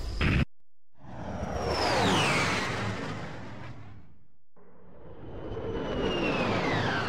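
A spaceship engine roars and whooshes past.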